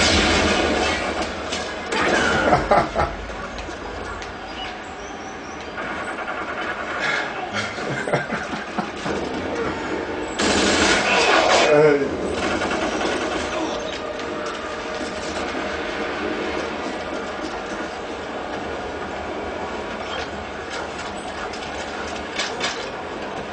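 Gunshots and explosions from a video game crackle through a television speaker.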